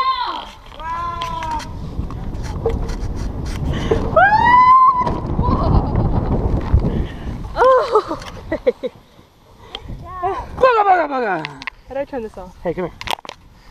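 A young child squeals and laughs with delight close by.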